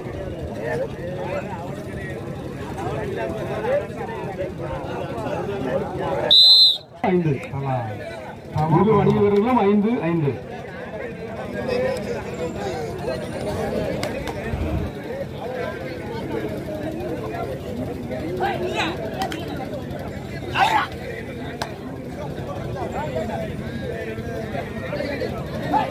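A large outdoor crowd chatters and cheers.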